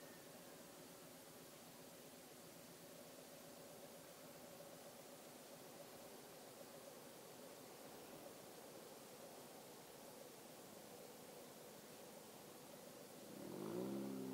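A motorcycle engine idles with a low steady rumble.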